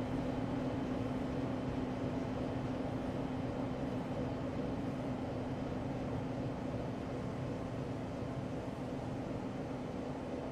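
Train wheels rumble over the rails.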